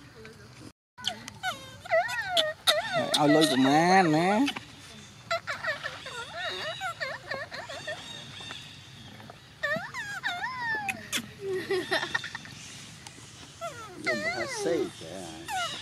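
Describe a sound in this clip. Young monkeys squeal and shriek loudly close by.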